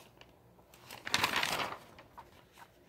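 A notebook page rustles as it is turned.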